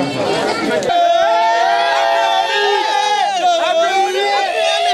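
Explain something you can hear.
A group of young men shouts and cheers excitedly.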